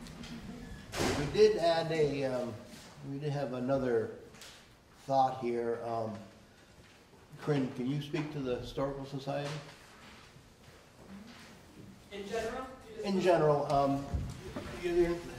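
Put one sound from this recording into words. A middle-aged man speaks calmly into a microphone in a room with some echo.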